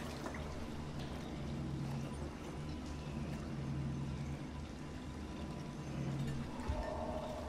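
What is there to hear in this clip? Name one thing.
Steam hisses softly from a boiling pot.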